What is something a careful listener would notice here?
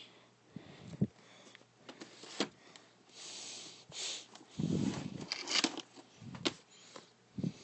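Plastic tape cases clack and rattle as they are handled close by.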